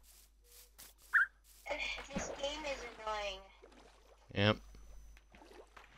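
Water splashes as something wades in.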